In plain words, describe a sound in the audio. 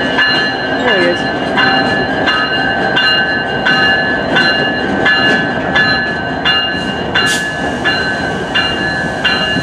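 A locomotive bell rings over and over at a steady pace.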